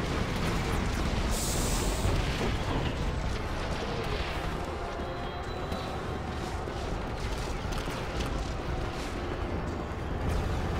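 Armoured footsteps run quickly across a metal floor.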